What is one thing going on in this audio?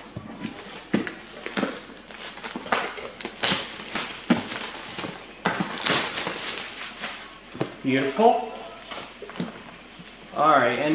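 Plastic wrapping crinkles and rustles as a box is handled.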